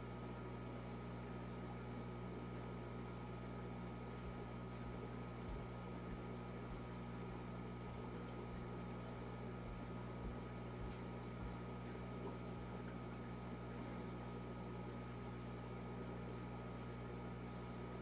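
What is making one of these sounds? An aquarium filter pump hums steadily.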